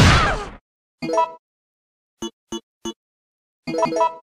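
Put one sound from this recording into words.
Short electronic menu beeps sound.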